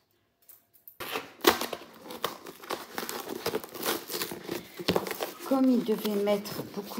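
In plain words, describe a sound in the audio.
Cardboard rustles and knocks as a box is handled.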